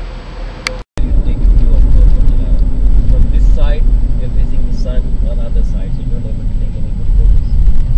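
A car drives along a road with a loud, steady engine and road rumble.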